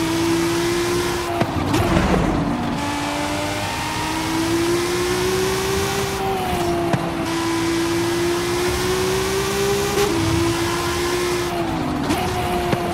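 A car engine roars at high revs, dipping briefly at gear shifts.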